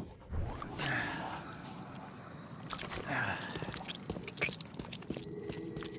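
Footsteps scuff slowly across a stone floor.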